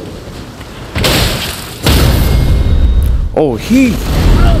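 A sword slashes through the air with loud, rushing bursts.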